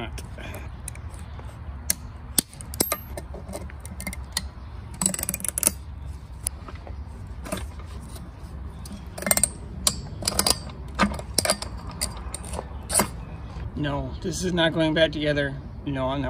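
Metal pliers click and scrape against a metal housing.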